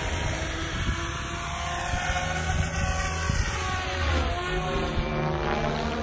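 A model helicopter's rotor whines loudly as it takes off and climbs away.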